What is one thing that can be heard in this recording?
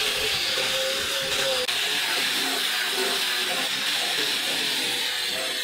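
An electric sander whirs steadily as it grinds across wood.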